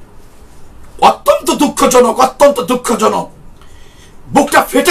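A man speaks firmly and with emphasis, close to a microphone.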